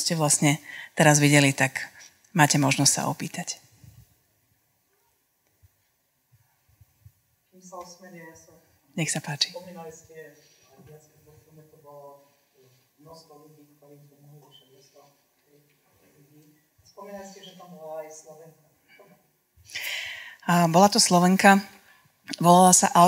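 A woman speaks into a microphone, heard through loudspeakers in a room.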